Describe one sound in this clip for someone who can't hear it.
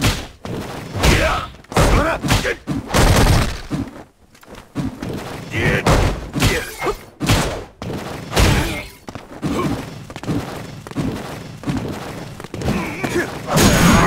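Punches and kicks land with sharp smacking thuds.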